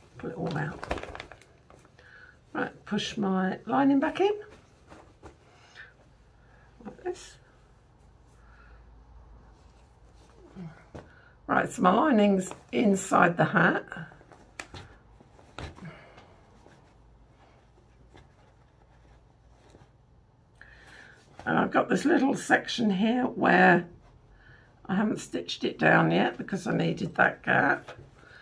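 A middle-aged woman talks calmly close by, in short bursts.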